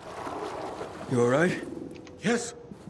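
A man asks a short question in a calm voice, close by.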